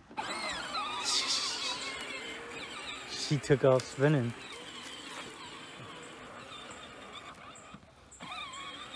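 A small electric motor whirs as a toy tractor rolls over grass.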